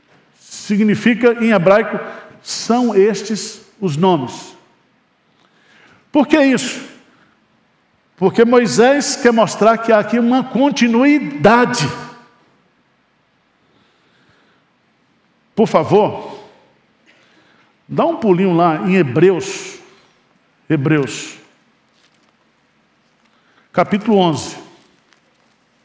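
A middle-aged man speaks with animation into a microphone, pausing often.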